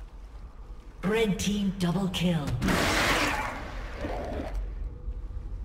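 Magical game attack effects whoosh and crackle.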